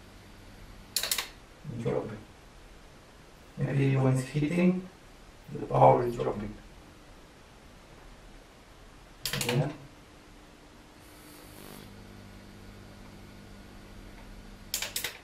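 A plastic switch on a power strip clicks a few times.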